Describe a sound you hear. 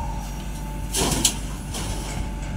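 Sand pours from a digger's bucket into a truck bed with a rushing thud.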